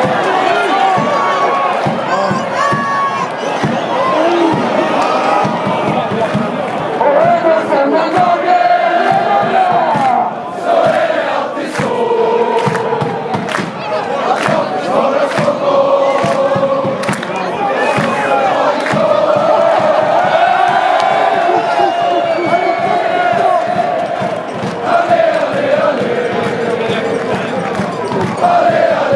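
A large stadium crowd chants and sings loudly throughout.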